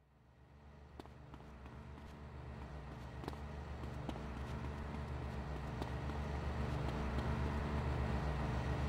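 Footsteps run quickly over stone and grass.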